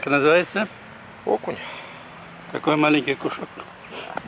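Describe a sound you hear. An older man talks calmly close by.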